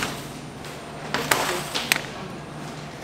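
A metal tray clatters against a steel counter.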